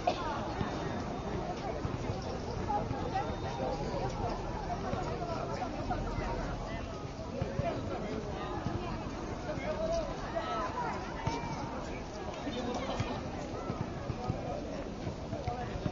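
A crowd of children and adults chatter and call out at a distance outdoors.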